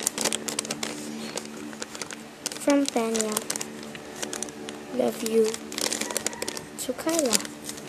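Paper rustles and crinkles between fingers.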